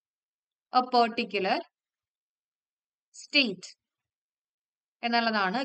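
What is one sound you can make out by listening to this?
A young woman speaks calmly and clearly into a close microphone, in short phrases with pauses.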